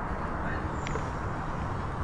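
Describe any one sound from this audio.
Metal spoons scrape against a metal tray of beans.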